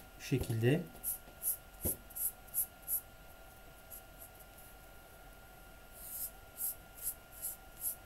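A felt-tip marker squeaks in short, rhythmic strokes across paper.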